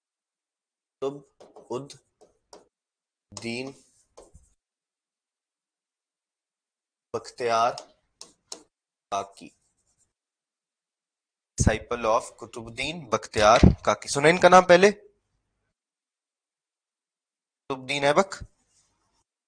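A man speaks calmly and clearly into a microphone, in short phrases with pauses.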